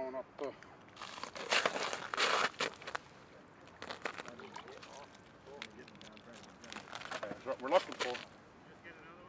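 Water splashes and slush rustles in a hole in the ice.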